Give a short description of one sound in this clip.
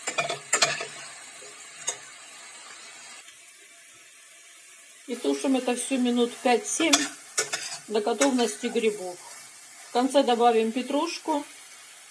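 A metal spoon scrapes and clinks against a pan while stirring food.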